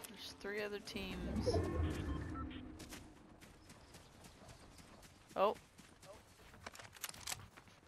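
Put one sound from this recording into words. Footsteps rustle through dry grass at a run.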